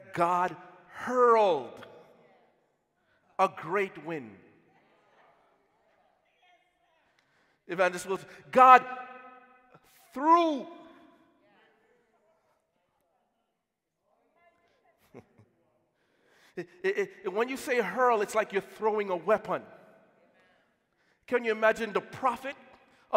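A man preaches with animation through a microphone in a large echoing hall, pausing between phrases.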